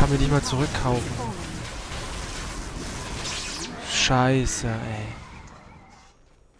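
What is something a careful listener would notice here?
Game sword clashes and spell effects burst in a fight.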